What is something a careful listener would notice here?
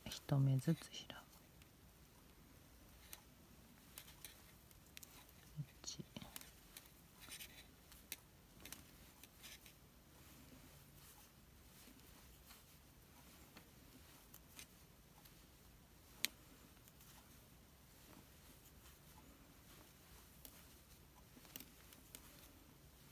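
A crochet hook softly clicks and taps as yarn is worked.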